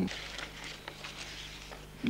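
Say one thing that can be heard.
Paper photographs rustle softly as hands handle them.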